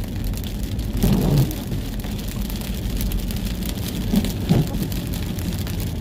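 A car engine hums low and steady from inside while driving.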